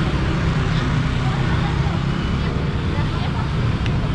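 Motorbike engines rumble nearby.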